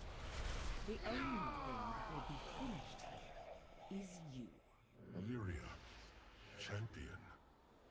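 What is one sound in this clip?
A deep-voiced character speaks slowly and with strain.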